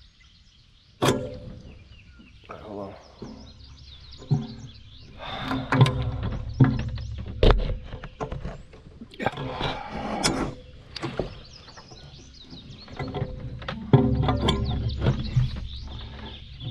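A man talks close up.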